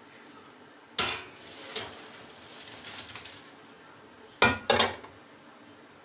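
A metal pot clanks against a metal colander.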